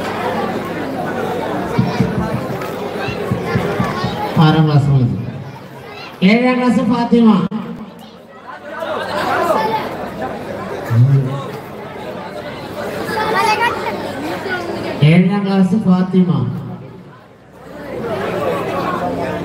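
A man speaks with animation, heard through a loudspeaker in a large echoing space.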